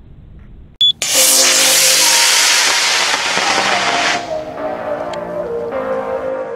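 A rocket motor roars loudly at liftoff and fades as the rocket climbs away.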